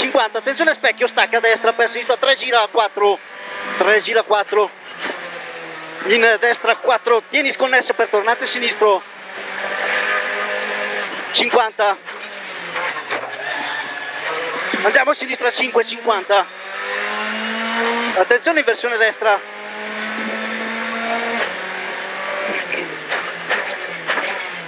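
A rally car engine roars and revs up and down through gear changes.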